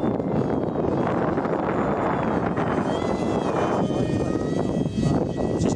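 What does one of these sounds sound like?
A jet roars loudly overhead with a high whine.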